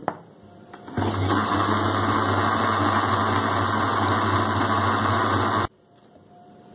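A mixer grinder whirs loudly, then stops abruptly.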